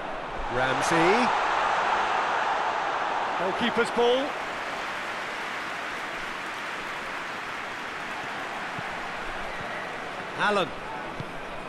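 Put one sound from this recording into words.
A stadium crowd roars and murmurs steadily.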